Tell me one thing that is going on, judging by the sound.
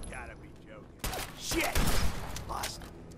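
A rifle's magazine clicks and clatters during a reload.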